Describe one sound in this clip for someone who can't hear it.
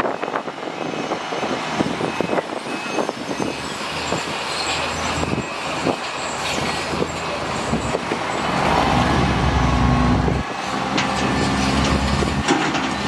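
Rocks and soil rumble and clatter as a dump truck tips its load.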